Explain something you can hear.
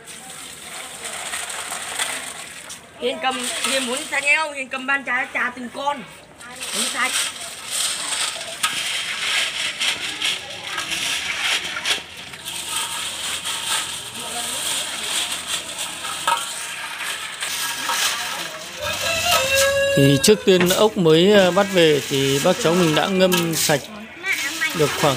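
Water splashes in a basin as hands wash something.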